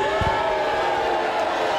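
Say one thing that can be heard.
A man announces loudly through a loudspeaker.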